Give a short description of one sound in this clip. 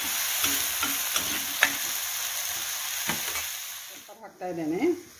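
Food sizzles loudly on a hot pan.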